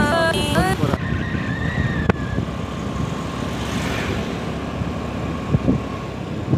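A motorcycle engine rumbles steadily on the road.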